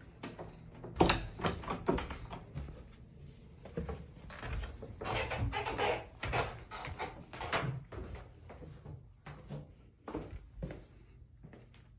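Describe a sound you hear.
Footsteps thud down wooden stairs.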